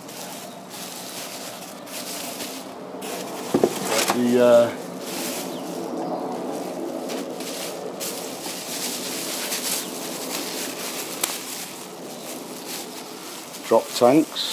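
Bubble wrap crinkles and rustles as it is handled.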